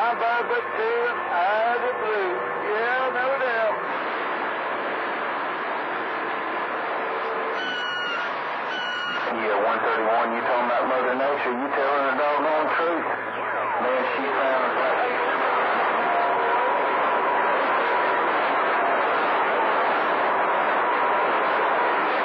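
A radio receiver hisses and crackles with static.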